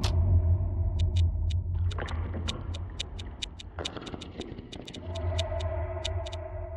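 Short soft clicks tick in quick succession.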